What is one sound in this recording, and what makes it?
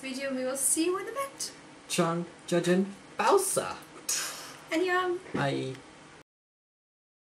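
A young woman sings playfully close by.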